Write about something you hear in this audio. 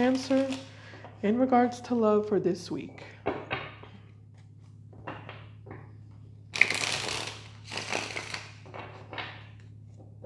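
Playing cards are shuffled by hand with soft riffling and slapping.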